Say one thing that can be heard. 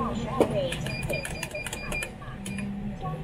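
A cash machine beeps as buttons are pressed.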